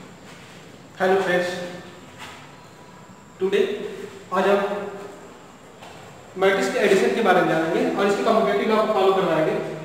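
A young man speaks calmly through a close microphone.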